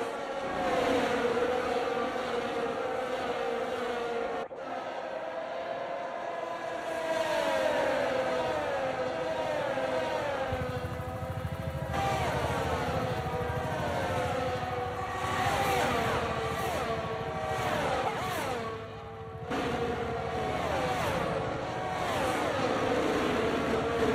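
Racing car engines scream at high revs, rising and falling in pitch as the cars pass and shift gears.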